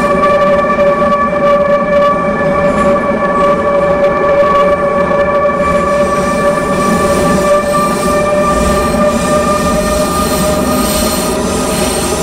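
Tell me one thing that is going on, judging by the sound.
An electric train's motors hum with a steady whine.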